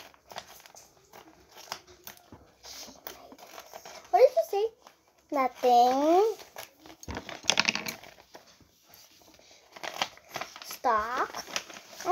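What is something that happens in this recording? A young girl speaks close by in a high, playful voice.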